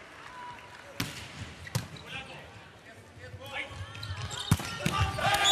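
A volleyball is struck hard with a smack.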